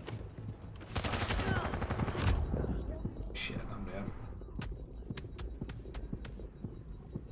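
Gunshots crack in loud bursts.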